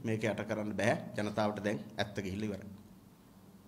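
A man speaks calmly through microphones, close by.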